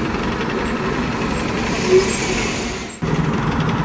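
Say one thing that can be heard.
A motorcycle engine runs nearby.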